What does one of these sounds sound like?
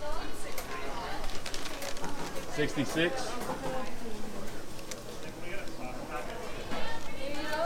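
Several people chatter in the background of a busy room.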